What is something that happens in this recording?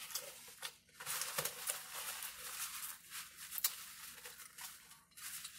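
A paper napkin crinkles close by.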